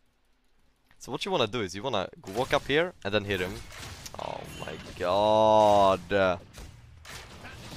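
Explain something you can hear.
A young man speaks with animation into a close headset microphone.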